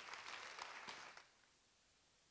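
An audience applauds in a large hall and the clapping dies away.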